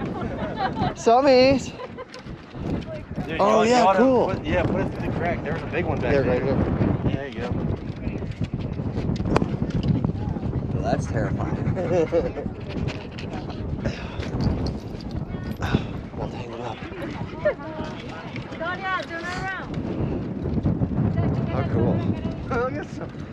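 Women and men talk nearby outdoors.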